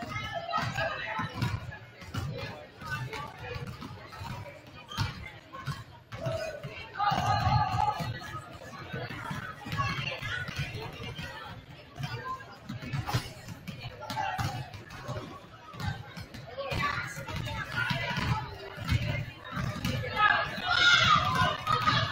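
Basketballs bounce on a wooden court in a large echoing gym.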